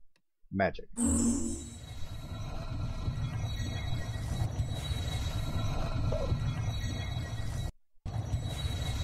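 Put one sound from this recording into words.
A low magical hum and whoosh swell as an altar charges up.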